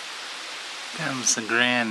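A model train's horn sounds briefly.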